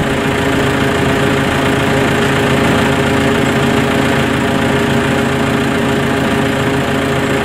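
A diesel engine runs loudly and steadily nearby.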